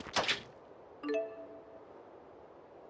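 A short chime rings out.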